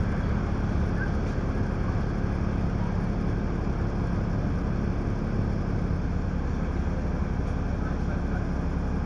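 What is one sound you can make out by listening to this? Cars pass by on the road nearby.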